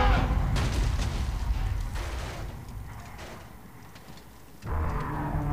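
A man in heavy armour thuds and scrapes onto a metal surface.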